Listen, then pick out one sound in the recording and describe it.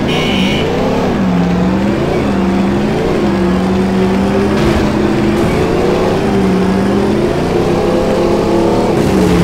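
A car engine roars steadily at high speed, shifting gears.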